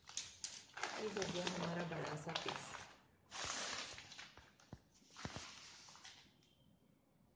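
A plastic sack rustles and crinkles as hands smooth it out.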